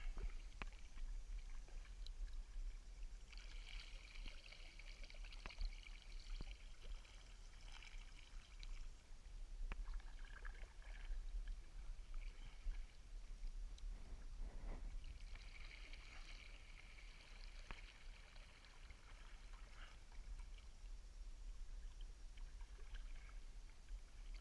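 A paddle splashes and dips into water close by.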